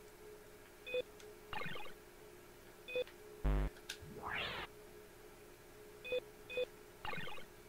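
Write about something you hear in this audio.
Short electronic beeps sound as menu choices are made.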